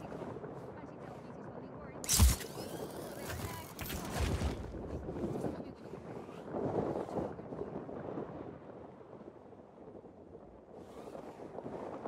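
Wind rushes past a parachute gliding through the air.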